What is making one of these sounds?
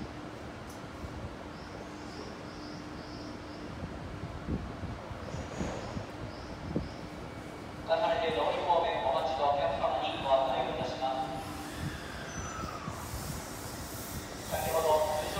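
An electric train rolls slowly into a station with a low rumble.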